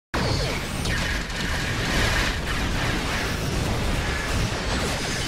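Laser weapons fire and zap rapidly in a space battle.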